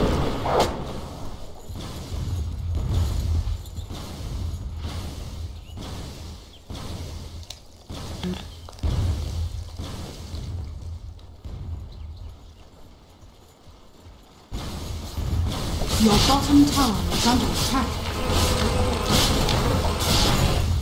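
Video game battle sounds clash, zap and thud in quick bursts.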